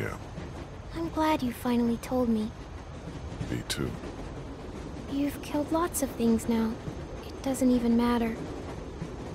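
A young girl speaks softly, close by.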